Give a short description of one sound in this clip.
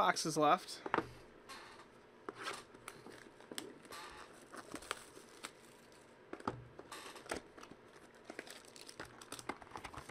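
A plastic wrapper crinkles and tears as it is opened.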